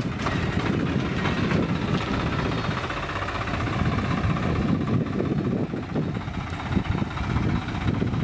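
A tractor drives off over rough ground.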